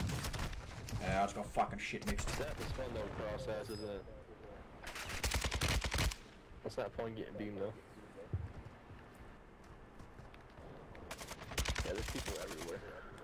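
Gunfire bursts out in rapid volleys.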